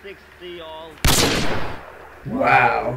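A video game blast booms loudly and rings out.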